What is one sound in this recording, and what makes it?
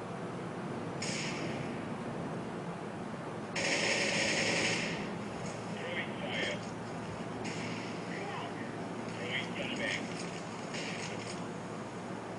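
Gunfire from a video game crackles in short bursts through small laptop speakers.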